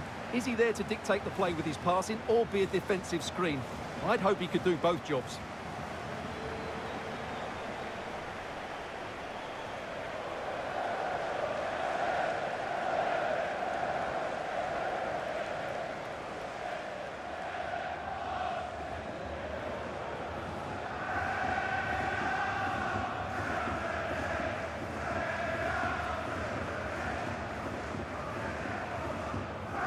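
A large stadium crowd cheers and chants in the distance.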